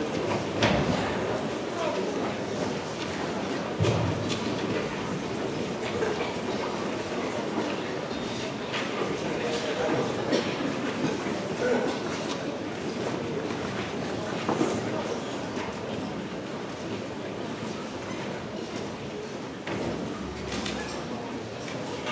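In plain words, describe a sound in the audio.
An orchestra plays in a large echoing hall.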